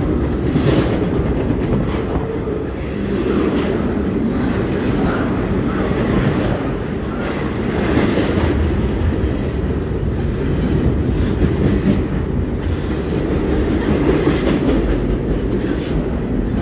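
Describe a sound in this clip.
A freight train rumbles past close by with a steady loud roar.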